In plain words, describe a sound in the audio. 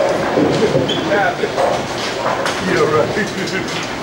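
Bowling pins crash and clatter on a nearby lane.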